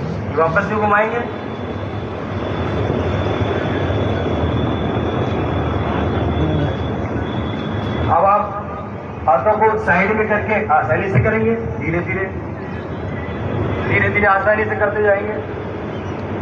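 A man calls out exercise instructions loudly nearby.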